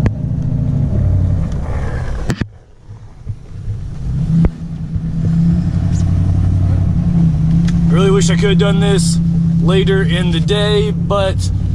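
A car engine revs up and hums steadily.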